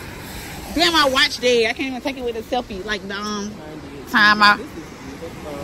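A young girl talks excitedly close by.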